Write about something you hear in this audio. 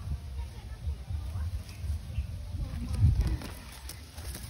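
A small child thumps against a concrete ring while climbing in.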